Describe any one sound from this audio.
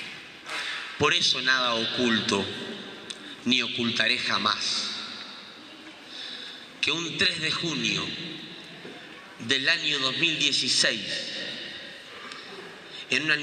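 A young man speaks calmly into a microphone, heard through loudspeakers in a large echoing hall.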